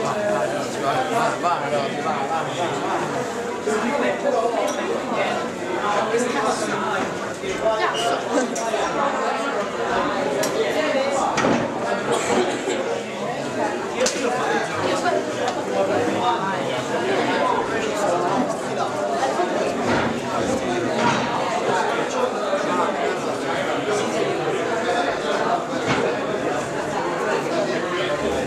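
A crowd of young men and women chatter close by, all at once.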